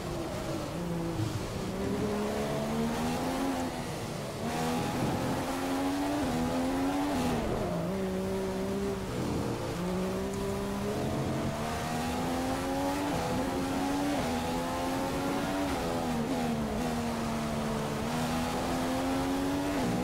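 A racing car engine whines, rising and falling in pitch as the gears shift.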